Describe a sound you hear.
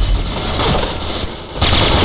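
Submachine guns fire.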